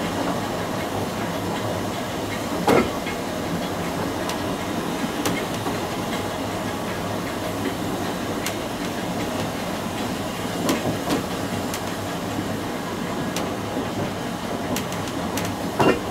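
A narrow-gauge steam locomotive rumbles as it rolls slowly along the track.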